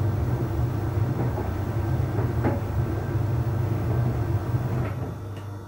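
A tumble dryer drum turns with a low steady hum.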